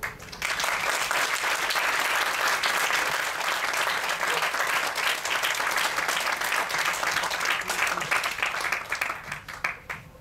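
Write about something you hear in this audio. A sitar plays a twanging melody.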